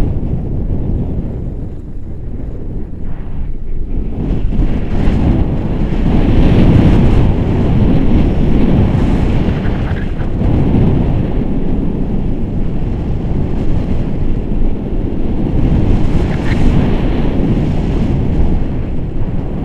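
Wind roars and buffets loudly against the microphone.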